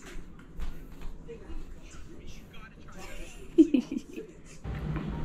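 A young woman laughs and talks playfully close by.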